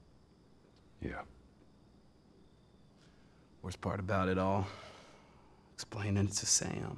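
A second man answers in a low, calm voice.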